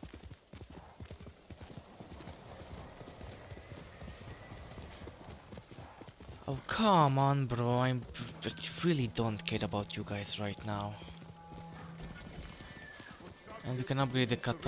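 A horse gallops, its hooves thudding rapidly on soft ground.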